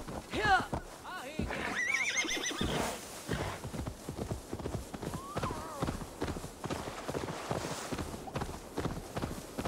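A horse's hooves pound rapidly at a gallop.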